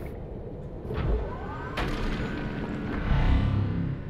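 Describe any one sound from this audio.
A hatch hisses and thumps open.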